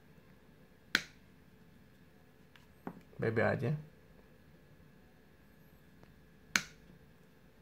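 Pliers snip through a cable with a sharp click.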